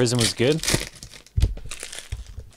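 A plastic wrapper crinkles in someone's hands.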